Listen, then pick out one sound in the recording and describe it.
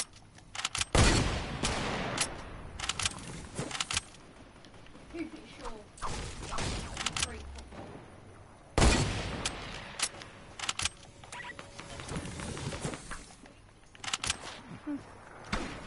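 Gunshots and building sounds from a video game ring out in quick bursts.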